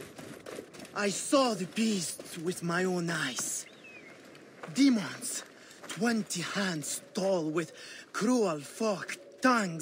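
A man speaks agitatedly and loudly, close by.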